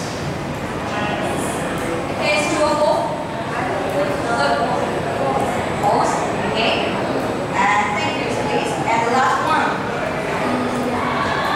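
A young woman speaks calmly into a microphone, heard over a loudspeaker in a room with some echo.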